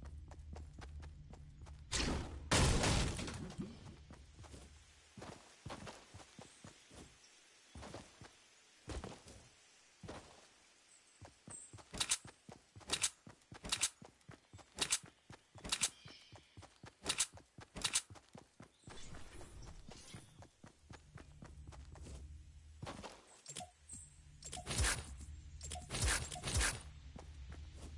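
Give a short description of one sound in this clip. Footsteps run quickly over grass and dirt.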